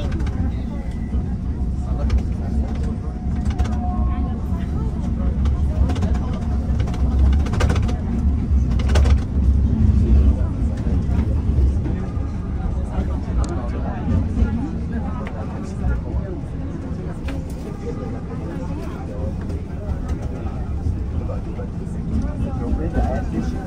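A vehicle's engine rumbles steadily as it drives along.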